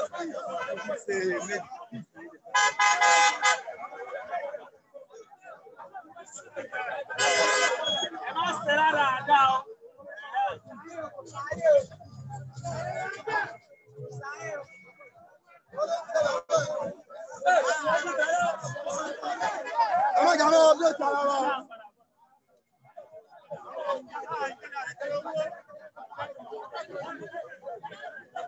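A crowd of men chants and shouts loudly outdoors.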